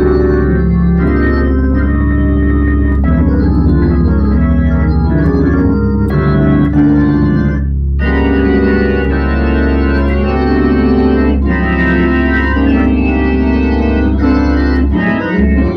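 An electric organ plays chords and a melody over a steady deep bass note.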